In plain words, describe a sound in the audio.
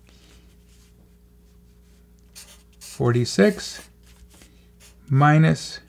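A felt-tip marker squeaks and scratches across paper.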